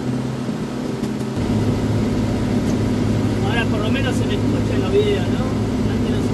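A car engine hums steadily, growing louder as the car speeds up.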